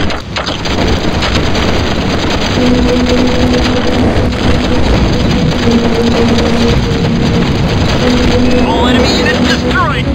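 Explosions boom and crackle in quick succession.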